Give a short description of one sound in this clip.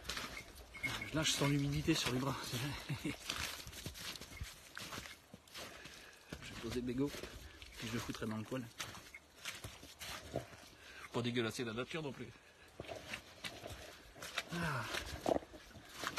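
A man talks calmly, close up.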